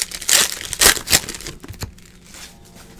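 Playing cards rustle and snap as a stack is handled.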